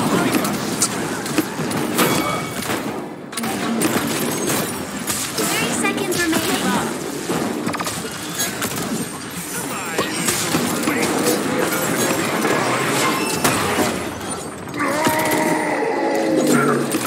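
Energy weapon shots zap and crackle rapidly.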